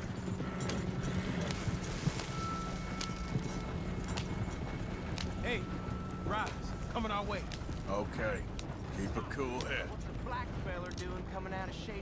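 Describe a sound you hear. A horse-drawn wagon rumbles and creaks along a dirt track.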